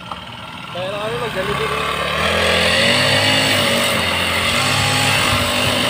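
A petrol grass trimmer engine revs up and runs loudly.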